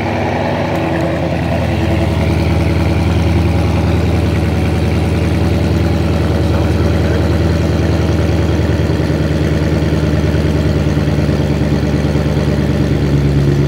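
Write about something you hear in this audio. A car engine idles with a deep, rumbling burble from the exhausts, close by.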